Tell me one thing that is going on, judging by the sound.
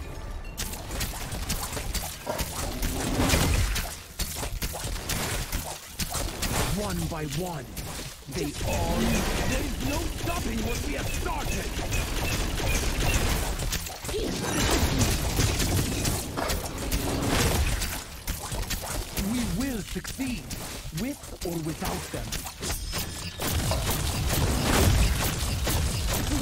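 Weapons strike with sharp hits.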